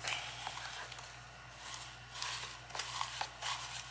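Hands rustle leaves and stems in a pot.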